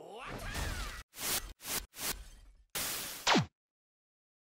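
Television static hisses loudly.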